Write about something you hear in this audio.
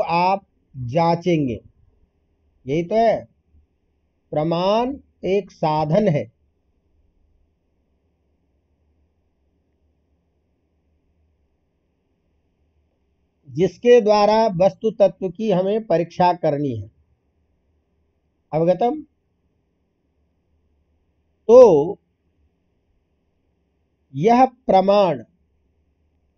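An elderly man talks calmly into a microphone, with pauses.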